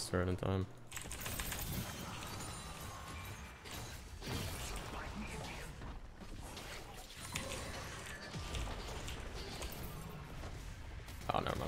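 Fantasy battle effects whoosh and crackle.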